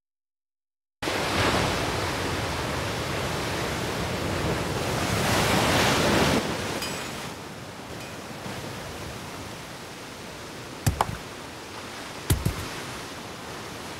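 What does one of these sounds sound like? Waves wash against rocks on a shore.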